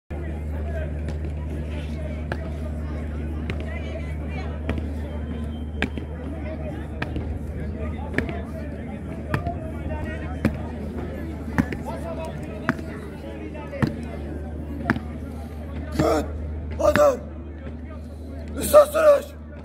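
A crowd murmurs softly in the background.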